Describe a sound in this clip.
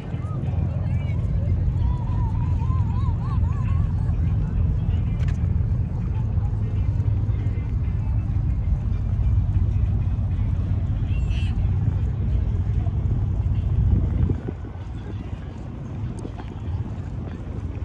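Wind blows in gusts outdoors, rumbling low.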